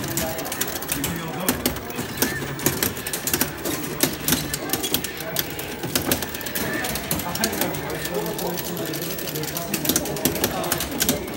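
Arcade game music plays loudly throughout.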